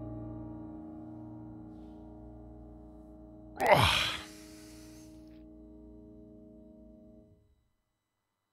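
A piano chord rings out and slowly fades away.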